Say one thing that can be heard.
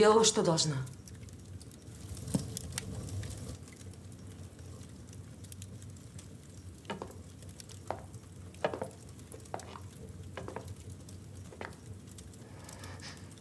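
A fire crackles and pops in a fireplace.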